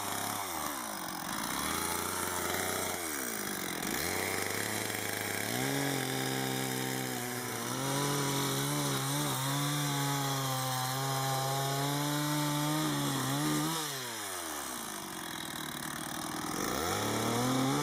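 A chainsaw idles between cuts.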